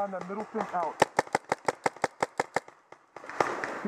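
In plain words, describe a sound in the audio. A paintball marker fires a rapid burst of shots close by.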